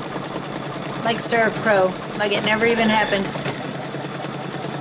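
A middle-aged woman speaks close by over a whirring machine.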